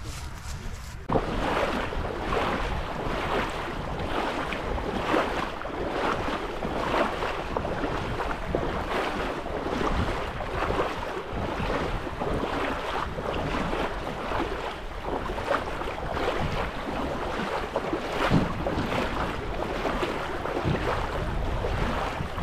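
Water splashes as people wade through it.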